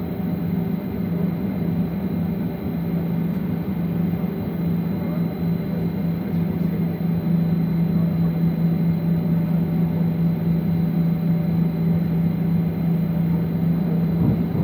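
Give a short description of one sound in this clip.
Jet engines hum and whine steadily as an airliner taxis.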